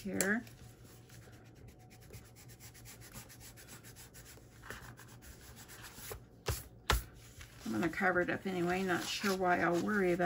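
Sheets of paper rustle under a hand.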